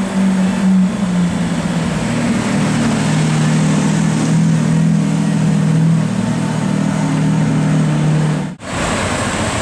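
A sports car engine idles with a deep, loud rumble.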